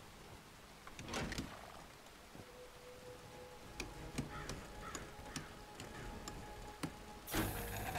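A metal lever clanks and clicks.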